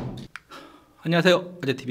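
A man speaks cheerfully into a microphone.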